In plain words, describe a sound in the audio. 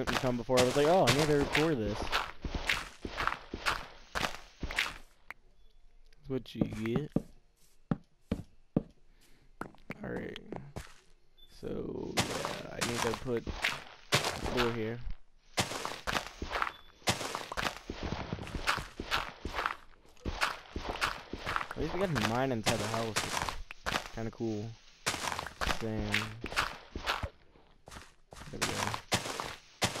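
Blocks crunch and thud as a tool digs through them in a game.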